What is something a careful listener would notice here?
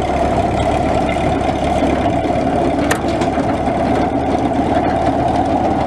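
A tractor engine runs loudly close by.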